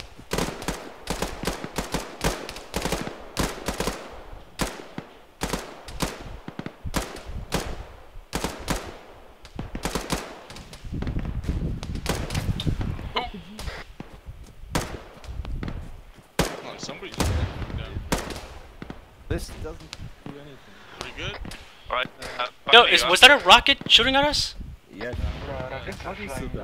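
Rifle shots crack repeatedly nearby.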